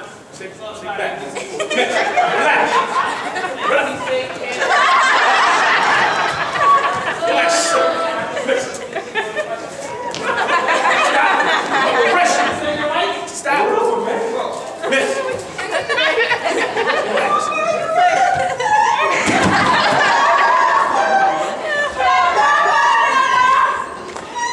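Men and women shout and argue loudly in a large echoing hall.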